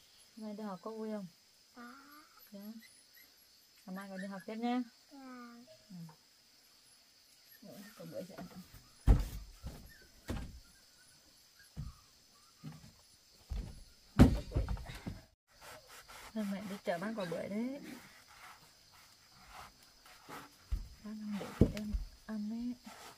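A young woman talks gently and close by.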